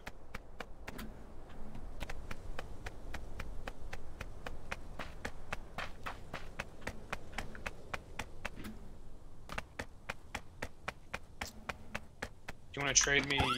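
Quick footsteps patter steadily on hard ground.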